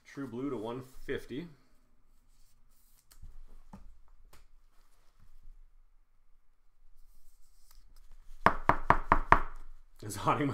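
Plastic card sleeves crinkle and click in someone's hands.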